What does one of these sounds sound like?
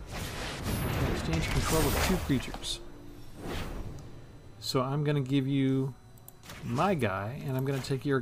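Magical whooshing effects sweep across.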